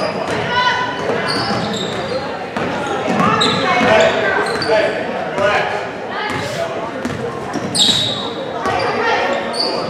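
A basketball bounces on the floor as it is dribbled.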